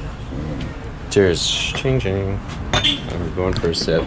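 Glass bottles clink together.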